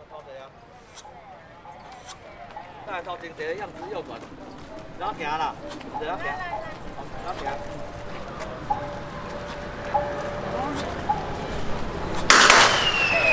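A crowd of men chatters nearby outdoors.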